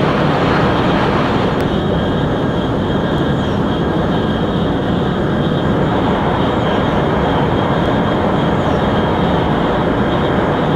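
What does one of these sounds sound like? A high-speed train roars steadily along the track at great speed.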